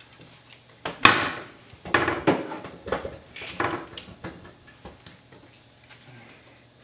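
Bottles knock and clatter on a countertop.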